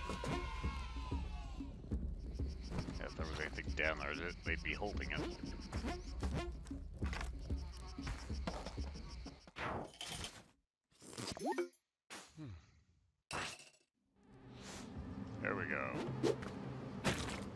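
Short game sound effects blip and jingle.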